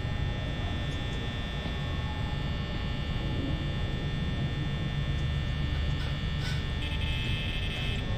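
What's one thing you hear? A fan hums with a steady low drone.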